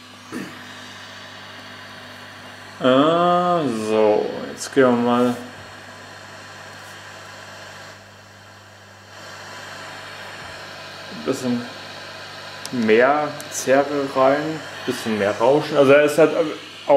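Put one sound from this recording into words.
An amplifier hums steadily.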